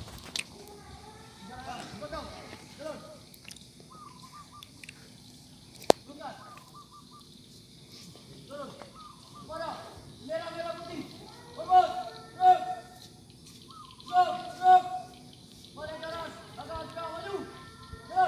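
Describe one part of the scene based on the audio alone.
A man calls out loudly in the open air, a little way off.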